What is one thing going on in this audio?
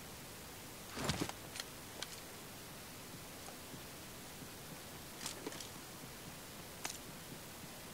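Gunshots crack sharply, a few at a time.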